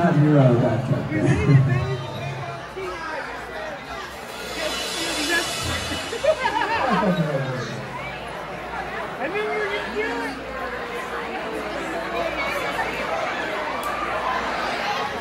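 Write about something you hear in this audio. Drums and cymbals beat steadily.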